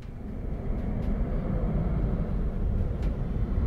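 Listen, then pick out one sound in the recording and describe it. A vehicle engine rumbles deeply.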